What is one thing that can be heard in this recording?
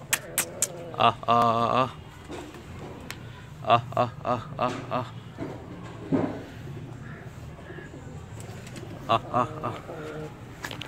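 Chickens cluck and call close by.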